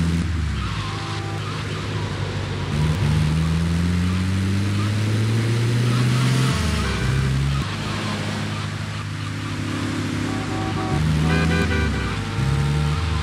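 A vehicle engine hums and revs as it drives along.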